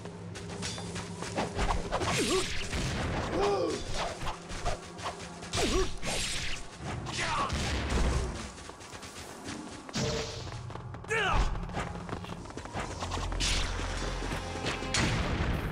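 Swords clash and slash in quick strikes.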